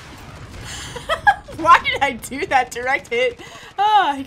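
A young woman talks excitedly into a close microphone.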